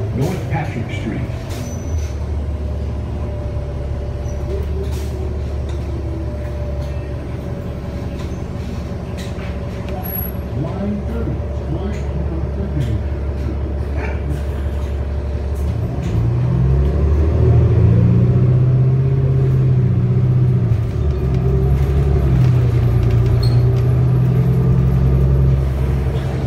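A bus engine hums and drones steadily, rising in pitch as it pulls away.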